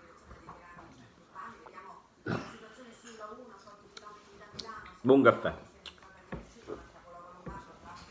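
A man sips coffee noisily.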